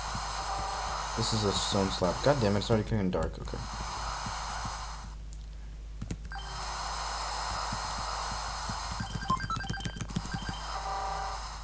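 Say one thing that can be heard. Rapid electronic blips chatter as text is typed out.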